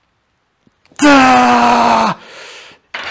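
A man groans loudly with effort.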